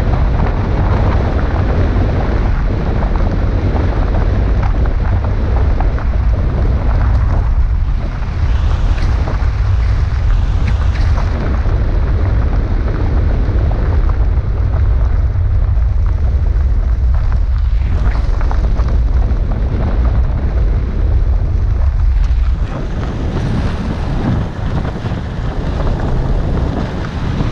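A car engine hums steadily as it drives along.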